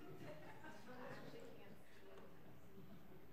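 Several men and women chat and murmur quietly in a large room.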